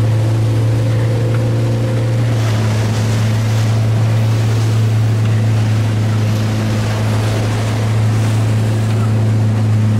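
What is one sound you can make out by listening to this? Water splashes and sloshes under a board.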